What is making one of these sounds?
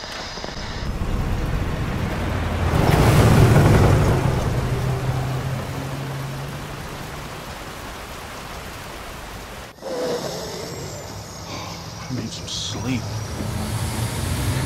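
Heavy rain patters on a windshield.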